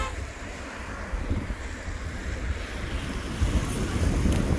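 Cars drive past on a wet road.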